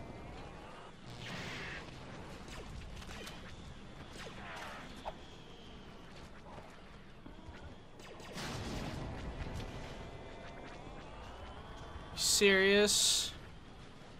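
Blaster guns fire in quick bursts.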